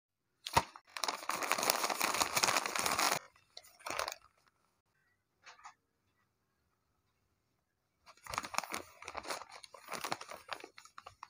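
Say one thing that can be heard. A paper bag crinkles and rustles in hands.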